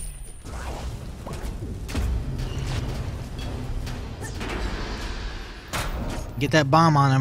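Magic blasts and weapon hits crash loudly in a fight.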